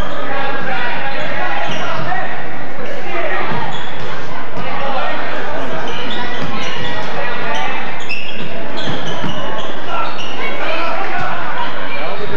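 A crowd cheers and chatters throughout a large echoing gym.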